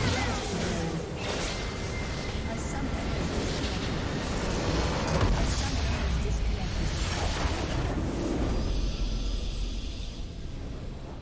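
Game explosions and spell effects crackle and boom in a fight.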